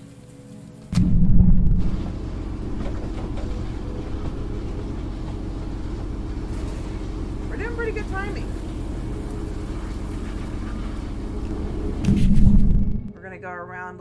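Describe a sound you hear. A heavy vehicle engine rumbles steadily from inside a cab.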